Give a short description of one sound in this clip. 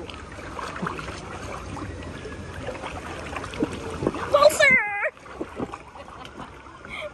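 Water splashes and laps around people in a pool outdoors.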